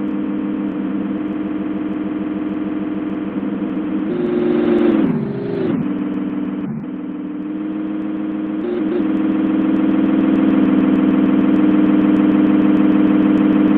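A train's wheels rumble along the tracks.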